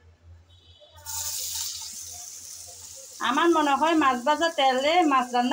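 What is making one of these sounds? Sliced onions sizzle steadily in hot oil.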